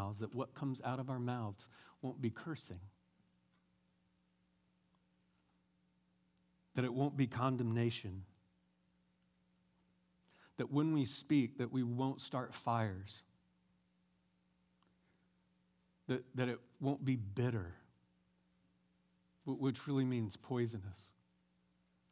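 A man speaks calmly through a microphone, with pauses, in a large room.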